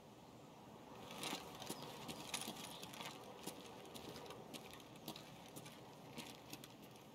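Footsteps crunch softly on gravel and grass.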